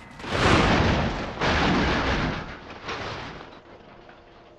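A truck crashes and tumbles down a rocky slope with loud crunching.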